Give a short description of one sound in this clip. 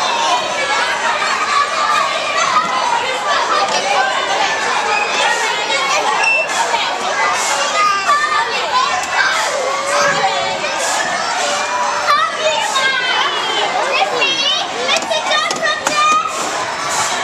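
A toddler babbles and chatters close by.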